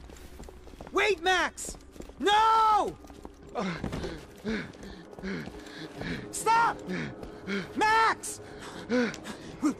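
A man shouts.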